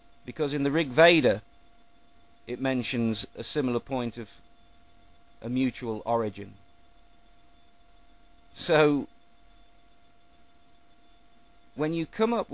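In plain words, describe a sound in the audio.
A middle-aged man talks close to a microphone in short bursts with pauses.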